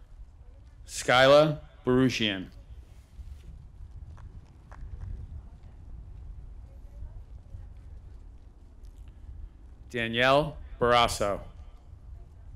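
A man reads out names over a loudspeaker outdoors, with a slight echo.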